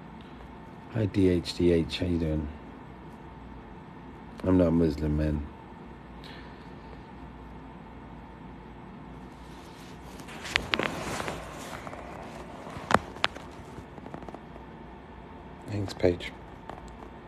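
A middle-aged man speaks calmly in short phrases, close to a phone microphone.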